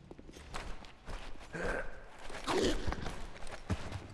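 Two men scuffle and grapple at close range.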